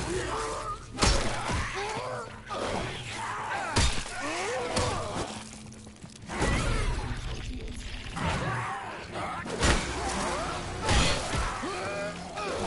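Heavy blows thud in a struggle.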